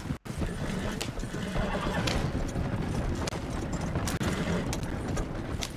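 Wagon wheels rumble over wooden planks.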